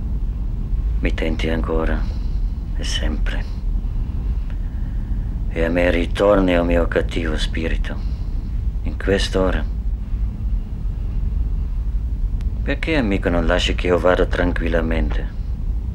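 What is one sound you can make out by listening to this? A man speaks calmly and slowly, with pauses.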